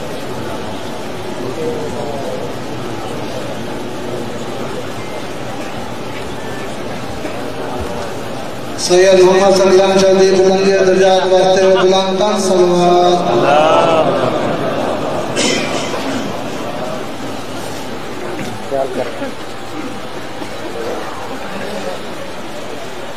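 A large crowd murmurs and chatters.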